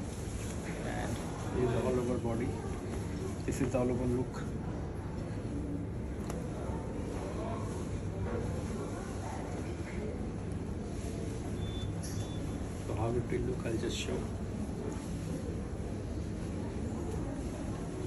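Fabric rustles as it is handled.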